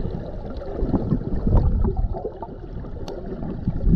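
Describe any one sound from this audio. A swimmer's kicks churn water, heard from under the surface.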